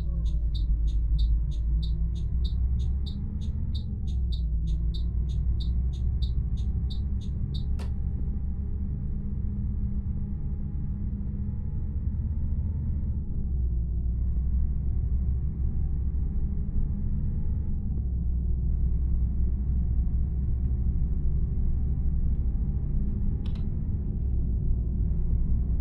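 A bus engine drones steadily, its pitch rising and dropping as it shifts gears.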